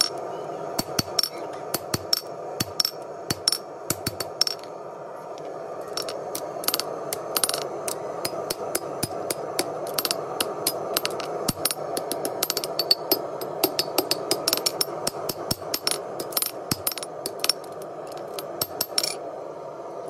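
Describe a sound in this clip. A hammer strikes hot metal on an anvil with sharp ringing clangs.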